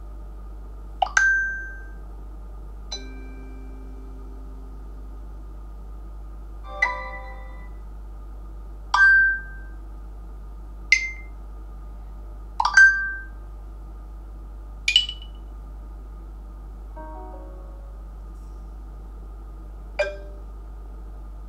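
Short notification tones chime from a phone speaker, one after another.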